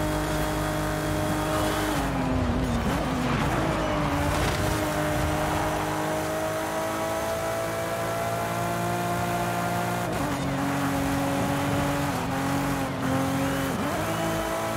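A sports car engine roars at high revs, dropping briefly with each gear change.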